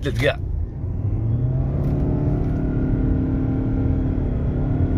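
A car engine rises in pitch as the car speeds up.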